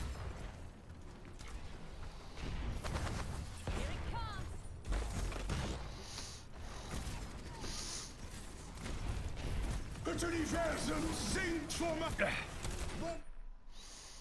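Energy weapons fire and zap in quick bursts.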